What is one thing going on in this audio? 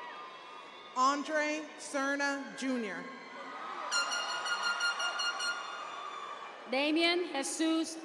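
A woman reads out over a loudspeaker in a large echoing hall.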